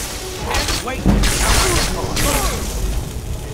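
A magic blast crackles and roars.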